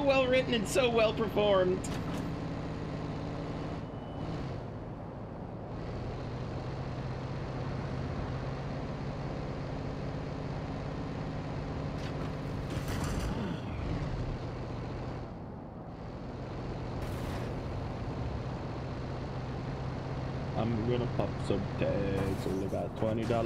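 A van engine hums steadily as it drives.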